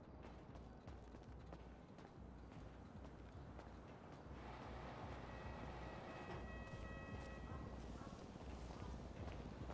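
Footsteps tap on paving.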